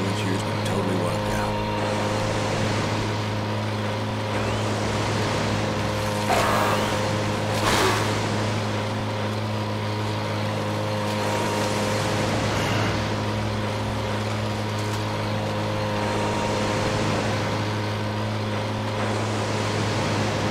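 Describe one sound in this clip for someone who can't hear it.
Water splashes against a boat's hull.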